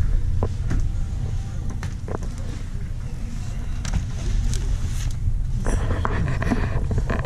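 A shopping cart rattles and clicks as it moves.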